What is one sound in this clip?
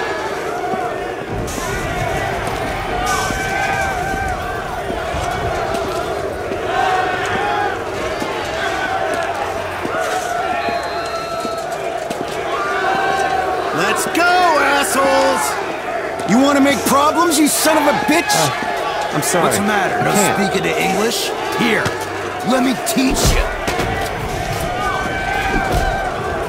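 A crowd of men jeers and shouts nearby.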